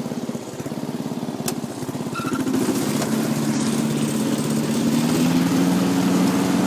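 A car engine idles with a fast low throb, then revs up and holds a higher hum.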